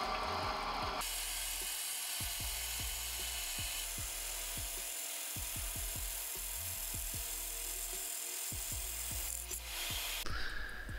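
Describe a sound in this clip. A band saw cuts through wood with a steady buzzing rasp.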